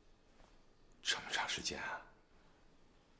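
A middle-aged man speaks tensely close by.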